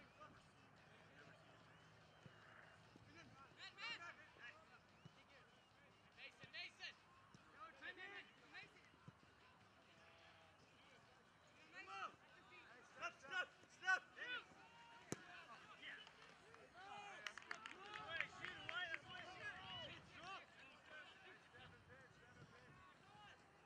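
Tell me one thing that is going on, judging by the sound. Young men shout and call out to each other across an open playing field.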